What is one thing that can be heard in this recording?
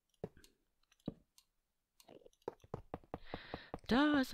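A metal rail clicks into place.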